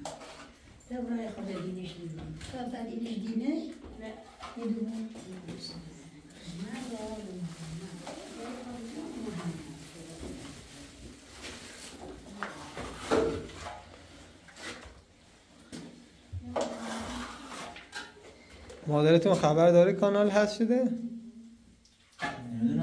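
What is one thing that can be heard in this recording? A trowel scrapes plaster across a wall.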